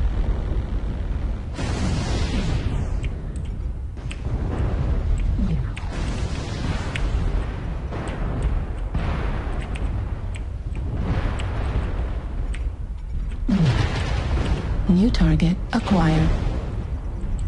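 Game weapons fire and explosions boom with a low rumble.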